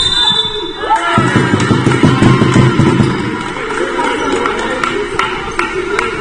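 A basketball thuds as it bounces on the floor.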